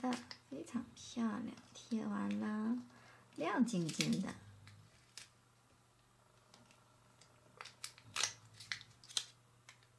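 A plastic sticker sheet crinkles and rustles close by.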